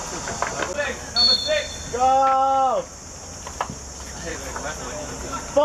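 Teenage boys shout across an outdoor pitch.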